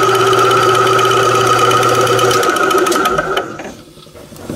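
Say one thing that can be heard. A drill press whirs steadily as it cuts through metal, then winds down.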